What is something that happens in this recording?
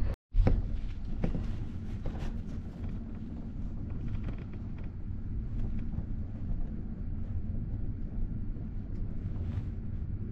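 Train wheels clatter and clank over rail joints.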